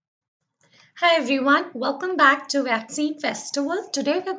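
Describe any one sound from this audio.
A young woman speaks calmly and clearly into a close microphone.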